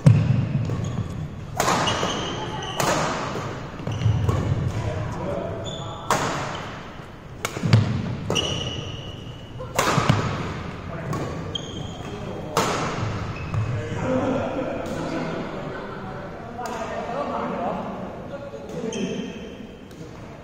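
Shuttlecocks are struck with sharp racket smacks that echo in a large hall.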